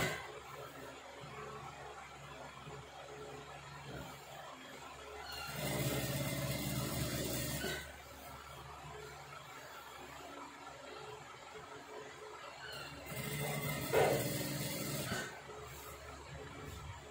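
Cloth rustles as it is handled.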